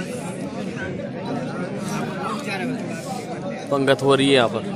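Many people chatter at once in a crowd.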